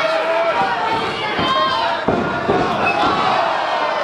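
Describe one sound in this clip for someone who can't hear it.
A wrestler slams down onto the ring mat with a heavy thud.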